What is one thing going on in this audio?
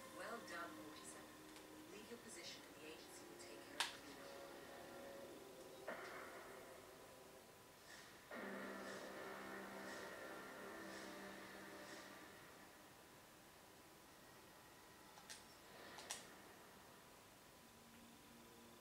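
Game music plays through a television speaker.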